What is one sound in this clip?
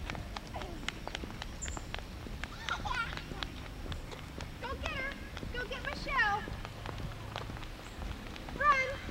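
Small children's feet patter on pavement as they run.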